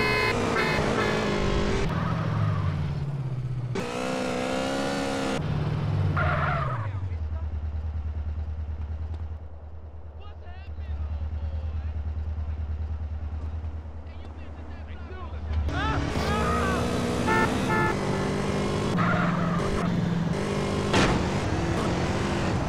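A motorcycle engine hums and revs.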